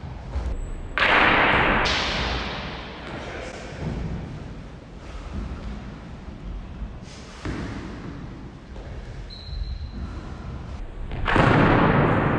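Wooden practice swords clash sharply with a ringing echo in a large hall.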